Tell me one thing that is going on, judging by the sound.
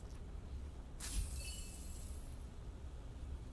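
Television static hisses softly.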